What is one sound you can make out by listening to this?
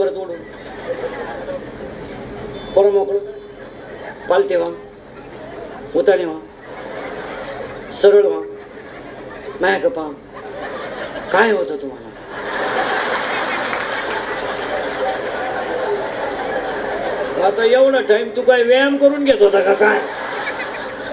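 An elderly man sings out in drawn-out phrases through a loudspeaker microphone.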